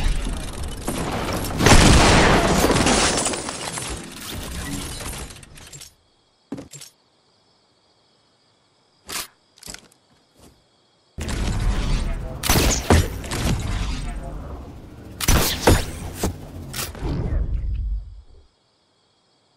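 Loud video game sound effects crash and clatter in bursts.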